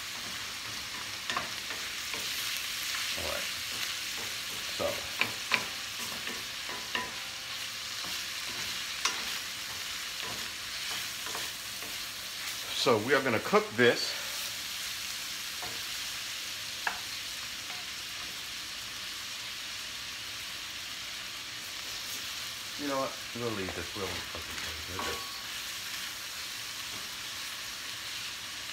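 Ground meat sizzles steadily in a hot pan.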